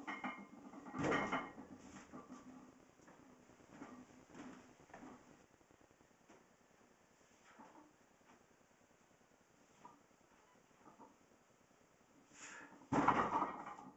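A loaded barbell clanks heavily as it is set down.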